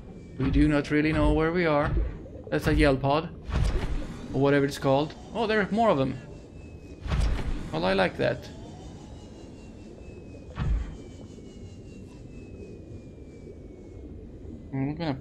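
A small underwater vehicle hums steadily as it moves.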